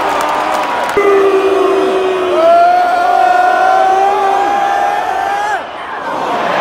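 A large crowd sings a chant together.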